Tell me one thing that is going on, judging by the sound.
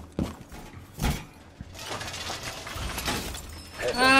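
A metal panel clanks and thuds as it is braced into place.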